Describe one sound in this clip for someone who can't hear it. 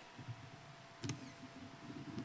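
A metal object is set down on a hard surface with a clink.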